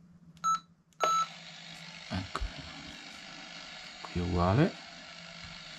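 Static hisses steadily from a radio.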